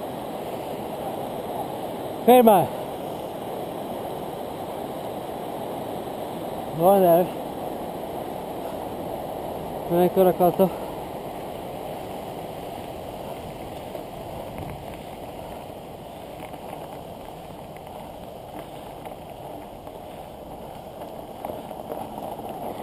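Bicycle tyres roll over a path and crunch on gravel.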